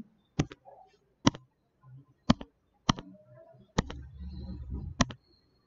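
A pen taps and scratches on a tablet while writing.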